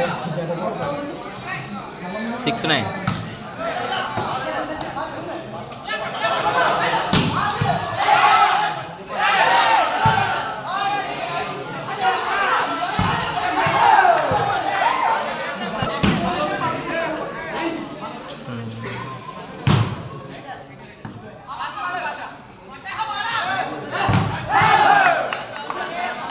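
A large crowd of young men shouts and cheers outdoors.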